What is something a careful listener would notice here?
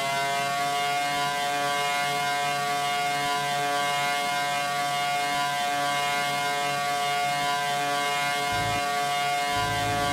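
A racing car engine screams at high revs, holding a steady high pitch.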